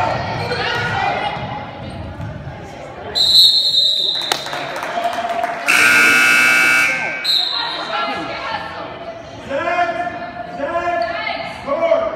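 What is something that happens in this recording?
Young girls shout and call out to each other.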